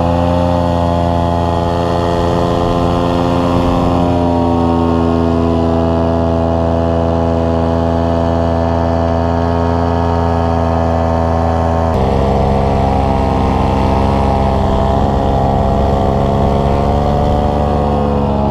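A paramotor engine drones loudly and steadily close by.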